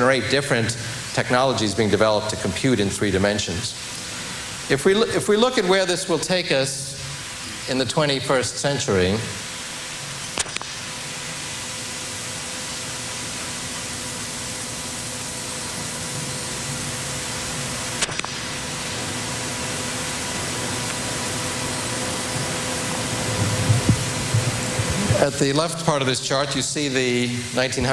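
A middle-aged man speaks calmly into a microphone, with a slight echo as in a large hall.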